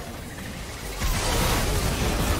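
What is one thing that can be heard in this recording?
Magic spells whoosh and burst in a video game fight.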